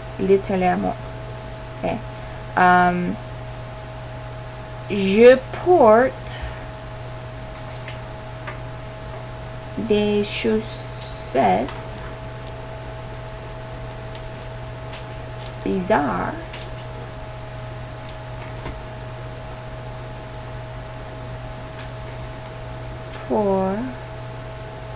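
A woman speaks calmly and slowly into a microphone, pausing often.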